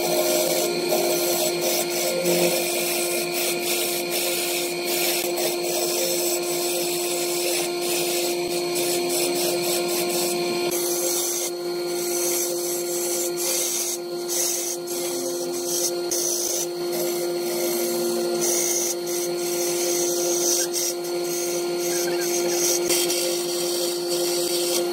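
A wood lathe motor hums as a wooden blank spins.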